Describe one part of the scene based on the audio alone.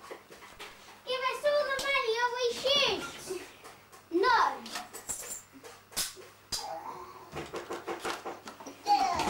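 Children talk excitedly close by.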